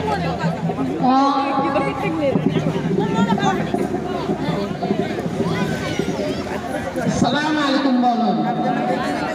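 A woman speaks into a microphone, heard through a loudspeaker.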